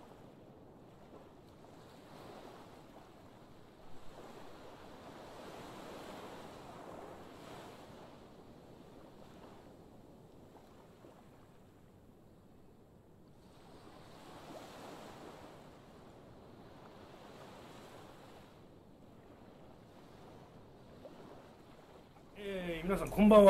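Gentle waves wash softly on open water.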